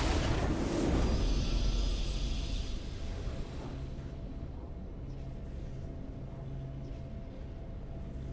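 A triumphant victory fanfare plays.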